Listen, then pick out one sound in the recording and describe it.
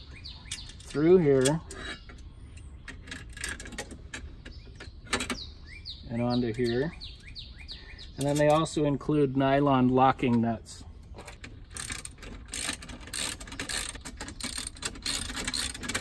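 Metal drawer slides click and rattle.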